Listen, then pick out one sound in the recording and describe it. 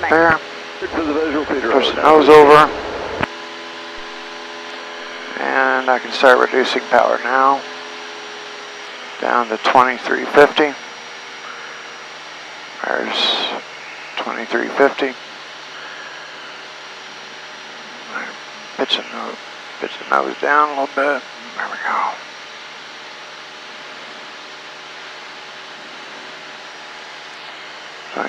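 An aircraft engine drones steadily throughout.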